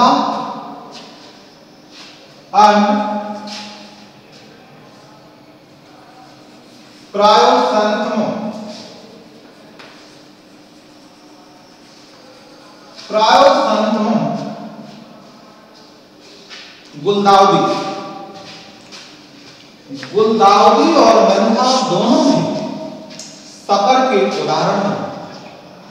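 A man speaks loudly and clearly in short bursts with pauses, in an echoing room.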